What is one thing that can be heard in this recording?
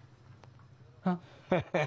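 An elderly man exclaims in surprise.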